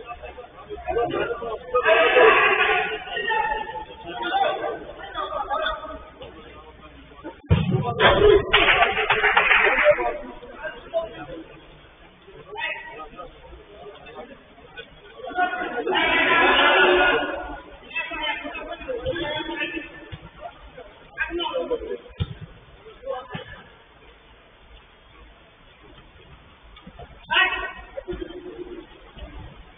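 Men shout and call out to each other from a distance.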